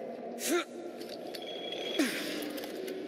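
A metal hook grinds and whirs along a rail.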